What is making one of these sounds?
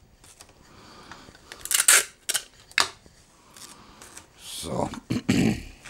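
Tape crackles and tears off a roll.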